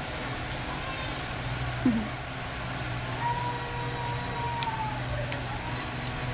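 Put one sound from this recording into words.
A small child whimpers and sobs close by.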